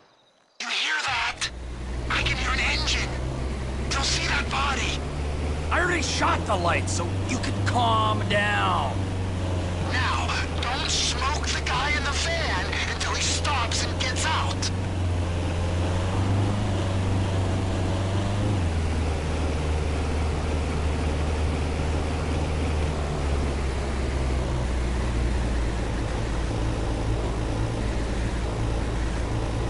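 A vehicle engine rumbles low and steady in the distance.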